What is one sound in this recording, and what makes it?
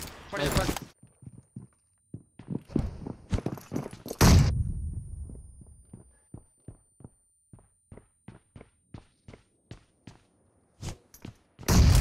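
Footsteps tap quickly up concrete stairs.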